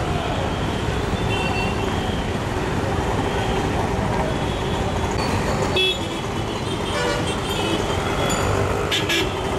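Auto-rickshaw engines putter close by.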